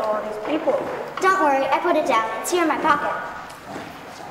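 Another young girl answers in a hall.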